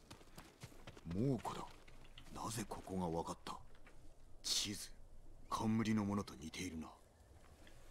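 A young man talks into a microphone close by.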